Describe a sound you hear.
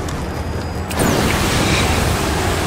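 A large burst of fire whooshes loudly.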